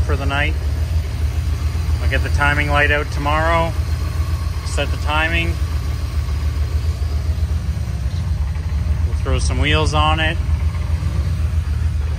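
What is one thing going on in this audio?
An engine idles with a steady low rumble.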